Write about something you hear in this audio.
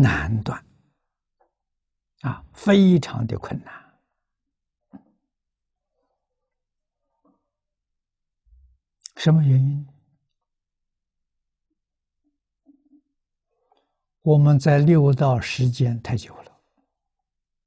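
An elderly man speaks calmly into a close microphone, with long pauses.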